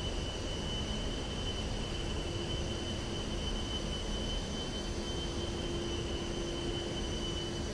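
Jet engines roar steadily with a high whine.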